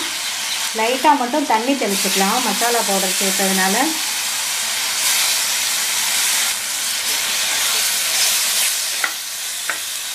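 A wooden spoon stirs and scrapes food in a metal pan.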